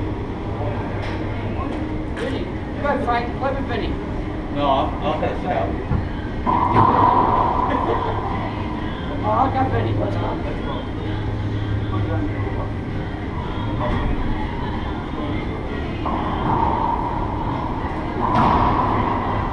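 A rubber ball smacks off racquets and walls with a sharp echo in a large hard-walled room.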